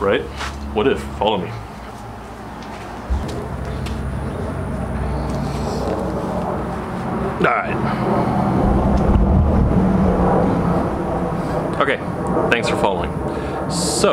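A man speaks quietly and close to the microphone.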